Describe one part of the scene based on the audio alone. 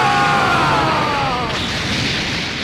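A game character screams with effort.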